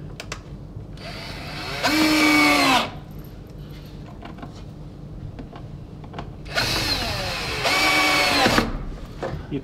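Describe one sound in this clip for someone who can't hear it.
An electric drill whirs in short bursts, speeding up and slowing down.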